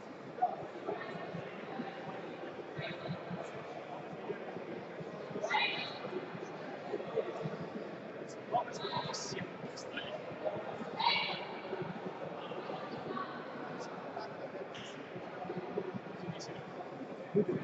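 A crowd of people talks and calls out in a large echoing hall.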